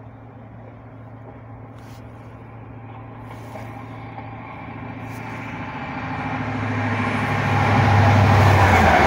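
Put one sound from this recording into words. A train approaches with a rising diesel engine rumble.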